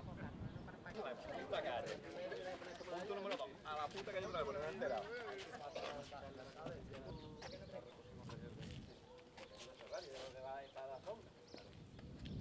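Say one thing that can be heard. Several men and women chat outdoors in a group.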